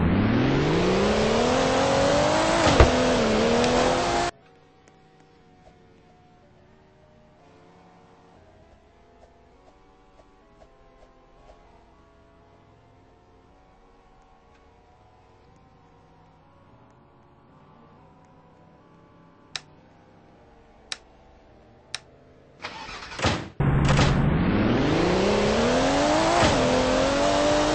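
A car engine revs up and roars, rising in pitch.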